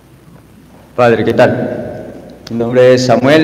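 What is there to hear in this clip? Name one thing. A young man speaks loudly and with emotion in a large echoing hall.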